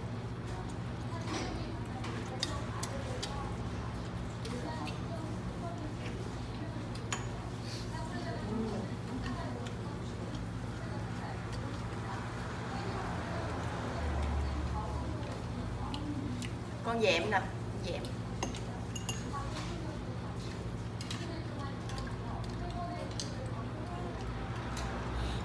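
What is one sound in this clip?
Chopsticks and utensils clink against bowls and a metal pan.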